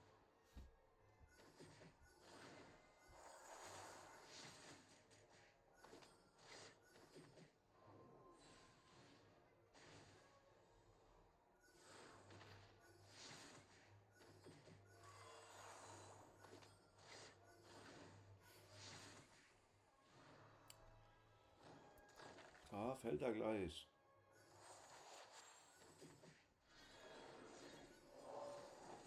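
Game battle effects crash and whoosh in short bursts.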